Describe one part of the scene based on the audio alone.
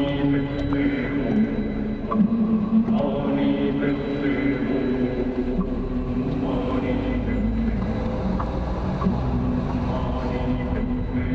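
Tyres roll over a rough road with small bumps and knocks.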